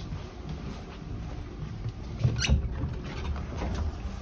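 A sliding door between carriages thuds and rattles as it opens.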